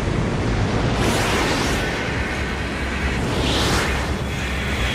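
A jet roars past with a rushing whoosh.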